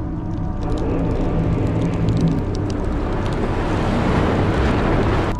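A deep, heavy rumble drones steadily.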